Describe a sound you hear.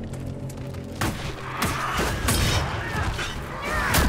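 Blades clash in a fight.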